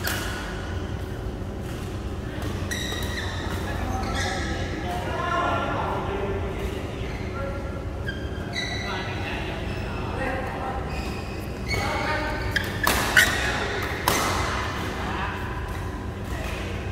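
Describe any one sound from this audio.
Rackets strike shuttlecocks with sharp pops.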